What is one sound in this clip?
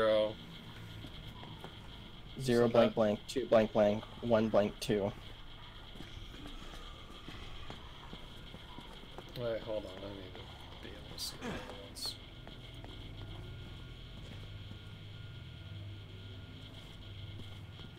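Footsteps scuff slowly over a gritty floor.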